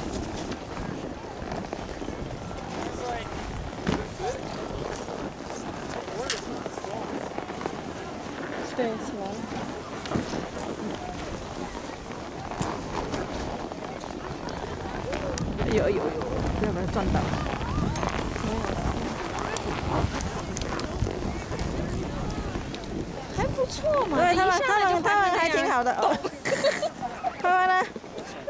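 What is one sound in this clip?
Snowboards scrape across packed snow.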